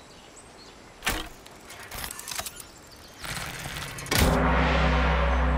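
A metal weapon clanks and swishes as it is swung.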